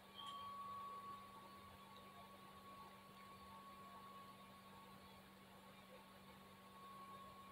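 A video game car engine hums steadily through a television speaker.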